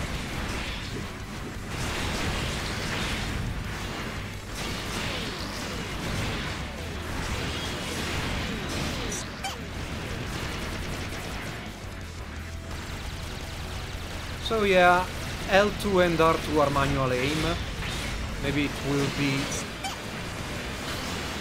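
Mechanical thrusters roar in steady rushes.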